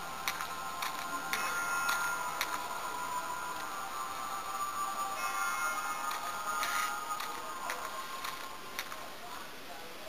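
Game music plays from a small tinny speaker.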